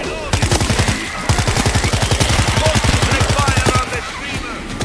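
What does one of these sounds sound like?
Rapid automatic gunfire rattles in fast bursts.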